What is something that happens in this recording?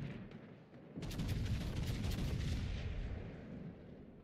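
Heavy ship guns fire with deep, rumbling booms.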